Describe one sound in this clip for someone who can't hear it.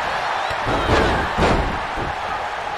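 Bodies thud heavily onto a wrestling ring.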